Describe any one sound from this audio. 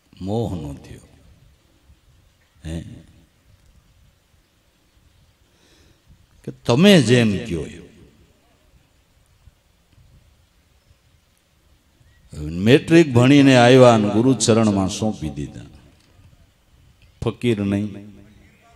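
A middle-aged man sings slowly and expressively into a microphone, in long drawn-out phrases with pauses between them.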